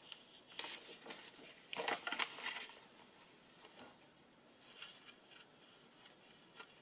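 Paper rustles and shuffles as a hand handles sheets.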